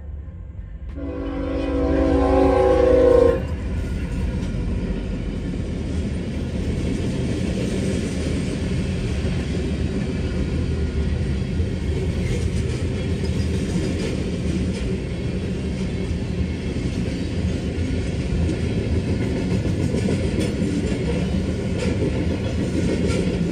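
A freight train rumbles and clatters past, close by.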